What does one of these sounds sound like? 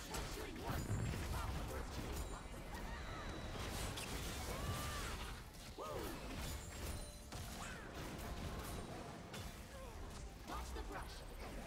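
Game characters strike each other with sharp hits.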